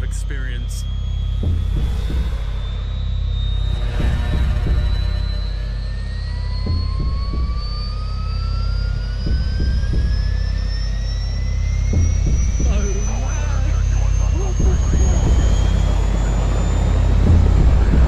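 A helicopter engine whines and rises steadily in pitch as it spools up.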